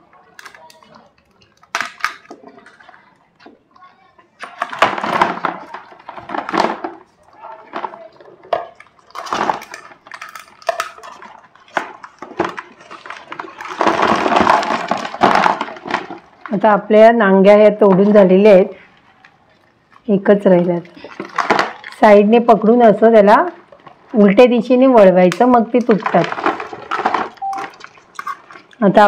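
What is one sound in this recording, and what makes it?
Crab shells scrape and clatter in a plastic bowl.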